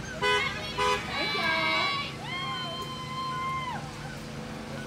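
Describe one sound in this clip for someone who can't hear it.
A young woman shouts loudly nearby, outdoors.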